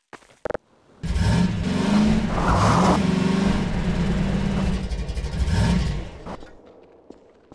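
A small buggy engine rumbles and revs loudly.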